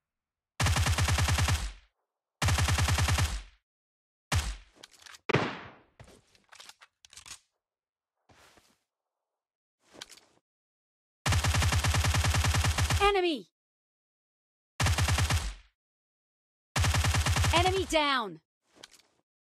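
A rifle fires rapid automatic bursts.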